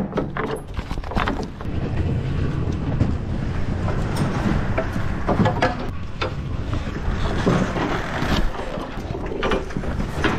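Metal strap buckles clack and rattle.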